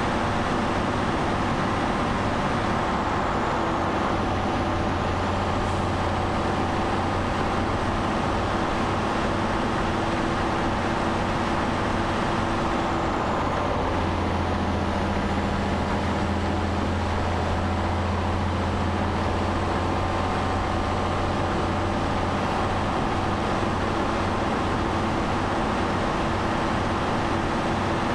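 Tyres roar on a wet road.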